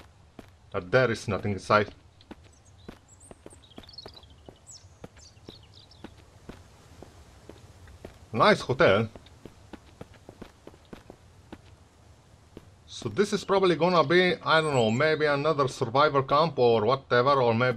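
Footsteps thud softly across a floor.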